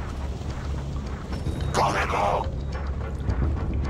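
Footsteps crunch slowly on rocky ground.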